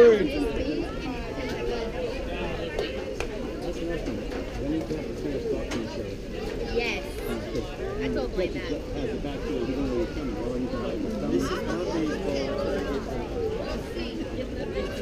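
Several people talk and call out nearby outdoors.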